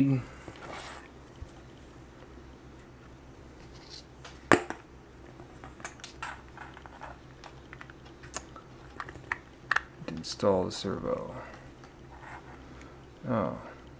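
Small plastic parts click and rattle as they are fitted together by hand.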